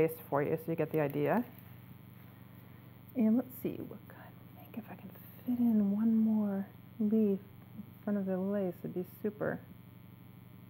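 A middle-aged woman speaks calmly and clearly into a microphone.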